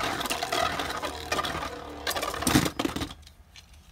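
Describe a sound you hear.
A spinning top whirs and scrapes around a plastic bowl.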